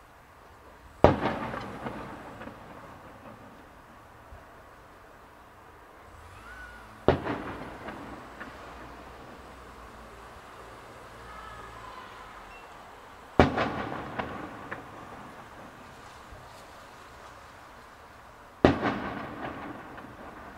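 Fireworks burst overhead with loud booming bangs that echo away.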